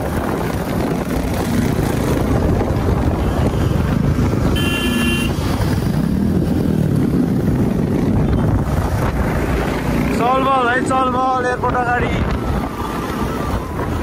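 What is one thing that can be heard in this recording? Wind rushes loudly past, as if outdoors while riding.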